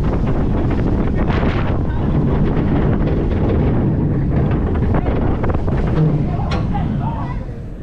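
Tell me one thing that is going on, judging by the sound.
A roller coaster car rattles and clatters loudly along its track.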